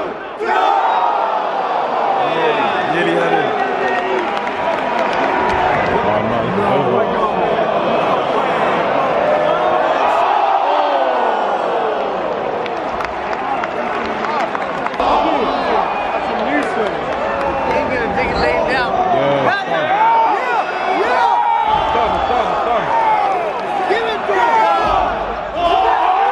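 A large crowd cheers and chants loudly in an echoing arena.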